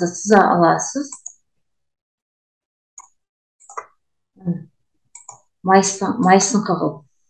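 A young woman speaks calmly and explains into a microphone.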